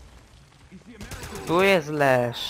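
Gunshots fire in rapid bursts.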